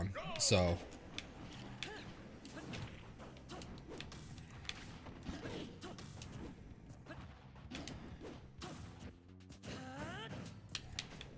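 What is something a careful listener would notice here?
Game hits and punches thump and crack.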